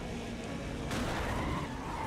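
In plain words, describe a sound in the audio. A car crashes with a loud metallic bang.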